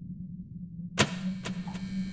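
A wall switch clicks.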